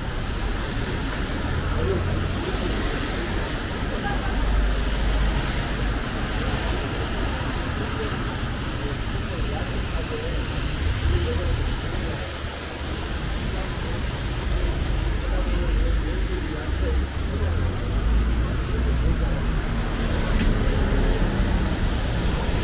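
Cars hum and swish past on a wet road nearby.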